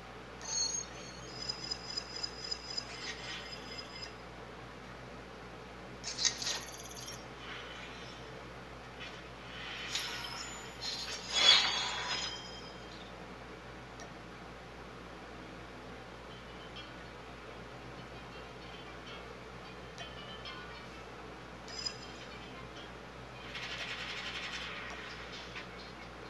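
Short electronic chimes and whooshes ring out now and then.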